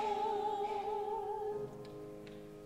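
A woman sings a held note with vibrato in a large echoing hall.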